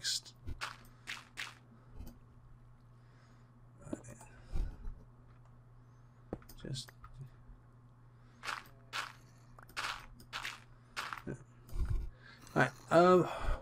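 Gravel and stone crunch in short bursts as blocks are dug out.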